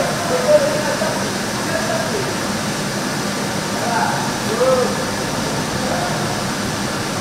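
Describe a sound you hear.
Young riders call out to each other across the hall.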